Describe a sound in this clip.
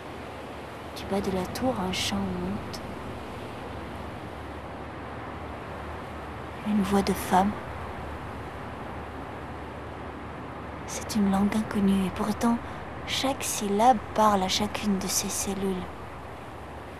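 A young woman speaks calmly and quietly close by, in pauses.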